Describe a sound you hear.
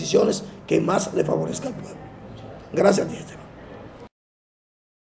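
A man speaks emphatically, close by.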